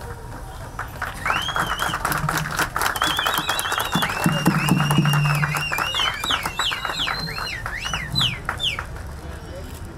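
A crowd of people applauds.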